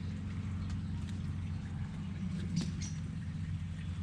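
Leaves rustle softly as a hand brushes through plants.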